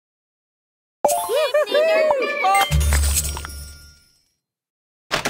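A bright, cheerful jingle plays.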